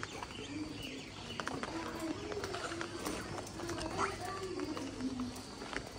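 A hen clucks close by.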